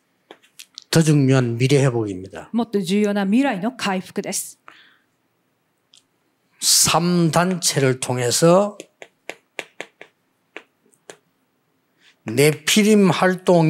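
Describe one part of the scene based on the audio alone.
An older man speaks with animation into a microphone.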